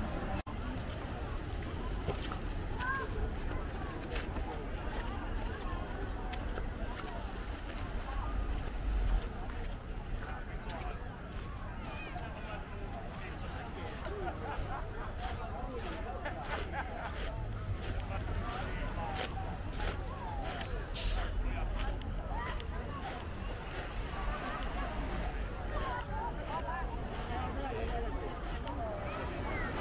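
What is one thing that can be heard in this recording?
Many voices of people chatter around outdoors.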